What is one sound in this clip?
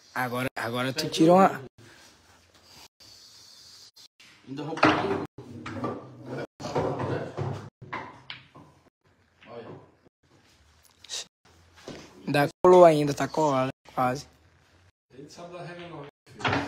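Billiard balls clack together and roll across the table.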